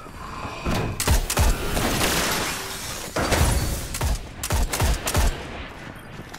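A rifle fires several loud, sharp shots.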